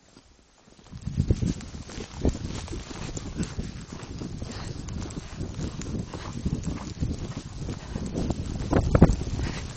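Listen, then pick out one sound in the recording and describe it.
A horse's hooves thud in snow as it gallops.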